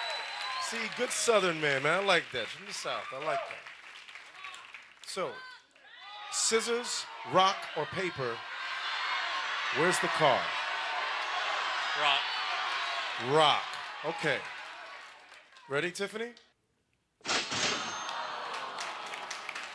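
A studio audience cheers and applauds loudly.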